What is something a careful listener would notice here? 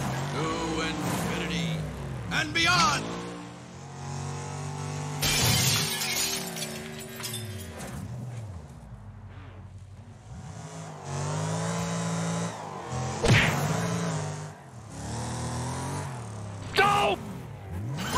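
Cars crash and metal crunches.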